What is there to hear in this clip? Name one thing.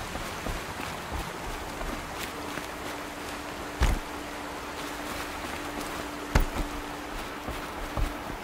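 Footsteps run quickly over grass and wooden boards.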